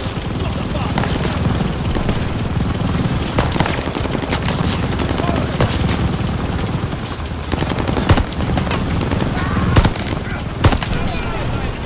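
Rifle shots crack sharply nearby, again and again.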